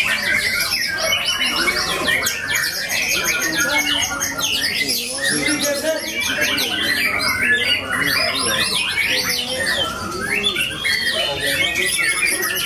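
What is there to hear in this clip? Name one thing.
A songbird sings a rapid, varied chirping song close by.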